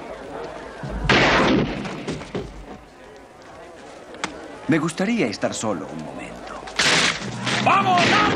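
A crowd cheers and shouts in bursts.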